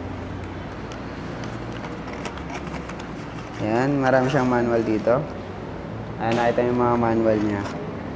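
Cardboard packaging rustles and crinkles in a man's hands.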